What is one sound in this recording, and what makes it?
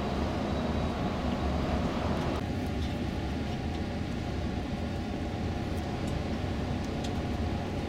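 A bus engine hums steadily inside the cabin.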